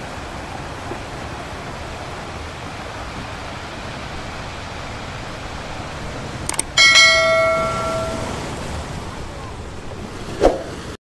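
Waves wash steadily onto a sandy shore.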